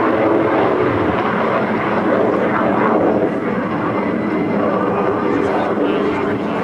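A rocket roars steadily in the distance.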